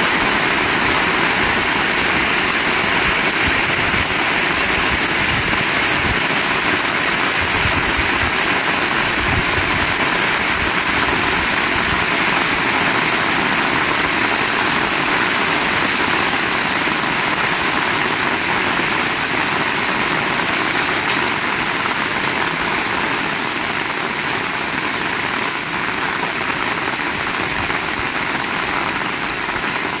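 Rainwater splashes on a wet road.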